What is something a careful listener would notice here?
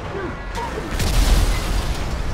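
A train smashes into a car with a loud crash.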